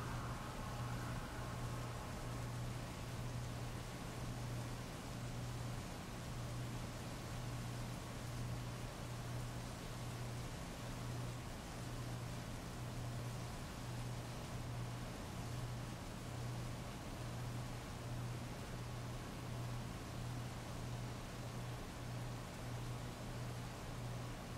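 Steady rain falls and patters on wet pavement.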